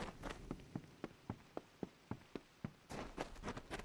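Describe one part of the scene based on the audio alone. Footsteps thud quickly on wooden boards.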